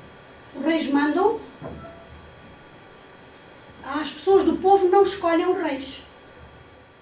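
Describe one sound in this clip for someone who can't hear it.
A young boy speaks calmly nearby.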